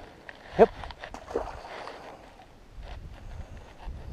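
A fishing weight splashes into water.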